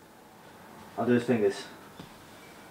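A bed creaks as a man lies down on it.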